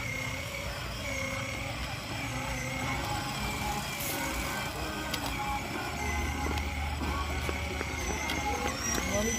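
A toy car's electric motor whirs steadily.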